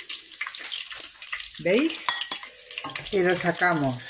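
A spoonful of garlic drops into hot oil.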